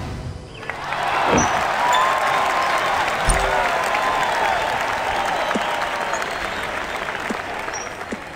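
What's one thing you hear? A golf ball whooshes through the air.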